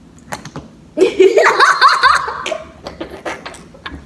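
A teenage girl laughs close by.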